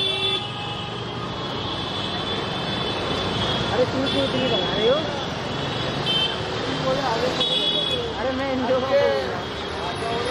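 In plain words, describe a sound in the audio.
Motor scooter engines putter and hum as a crowd of riders rolls by.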